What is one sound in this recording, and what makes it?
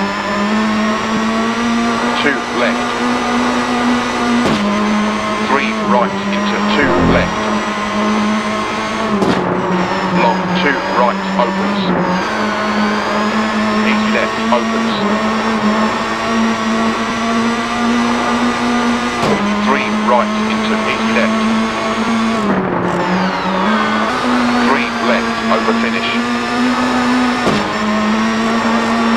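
A rally car engine roars at high revs, dropping briefly with each gear change.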